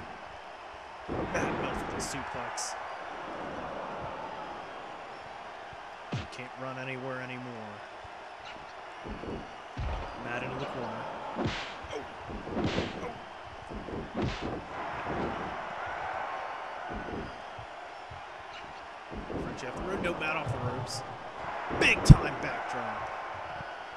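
A crowd cheers and roars steadily throughout.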